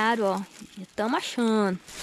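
A hand scrapes and rattles small pebbles on gravel.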